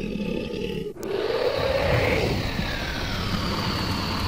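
A dragon breathes out a roaring burst of fire.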